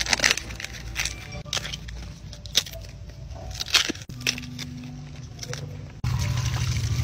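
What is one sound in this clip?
Bamboo shoot husks crackle and rip as they are peeled by hand.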